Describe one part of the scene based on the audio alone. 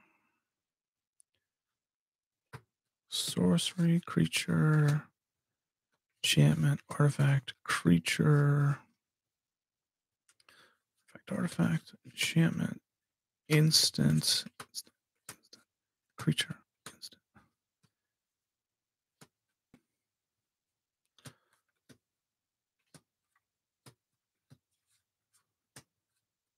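Playing cards slide and tap softly against each other.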